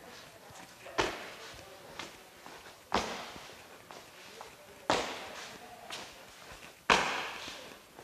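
Feet stomp on a wooden stage, echoing.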